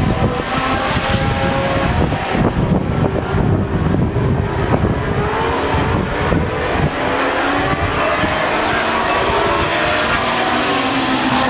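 Racing car engines roar and rise in pitch in the distance.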